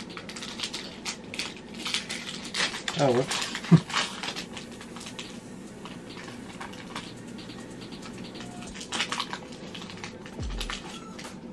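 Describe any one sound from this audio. A man talks calmly and close to a microphone.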